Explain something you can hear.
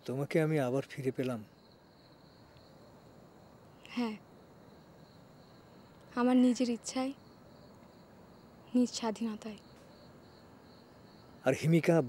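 A man speaks quietly and earnestly nearby.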